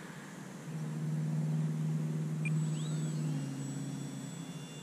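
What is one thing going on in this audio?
A small plane's engine drones overhead.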